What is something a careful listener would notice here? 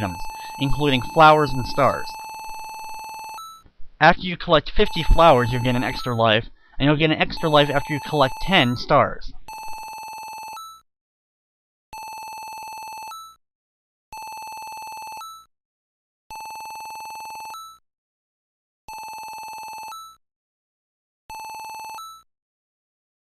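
Electronic text blips beep steadily in short bursts with brief pauses between them.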